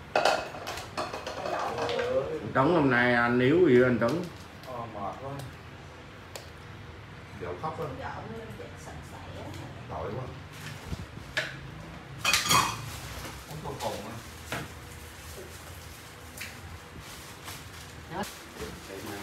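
Dishes and cutlery clatter on a table.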